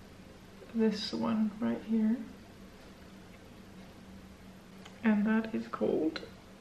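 A young woman speaks calmly, close to a microphone.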